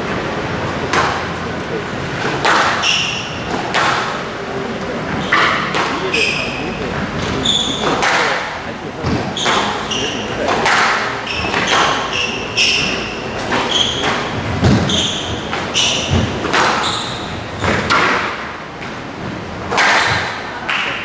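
Squash rackets strike a squash ball.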